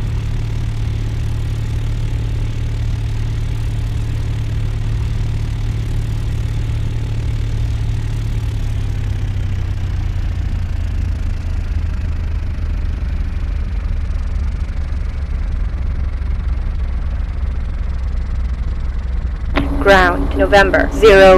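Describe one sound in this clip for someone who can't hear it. Aircraft engines hum steadily at a low idle.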